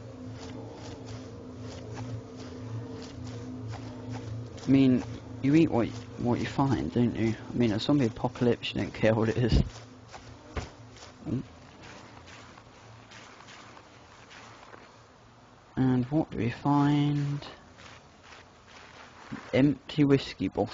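A body crawls through grass with soft rustling.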